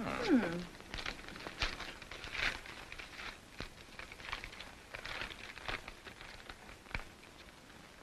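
Paper rustles and crinkles in hands.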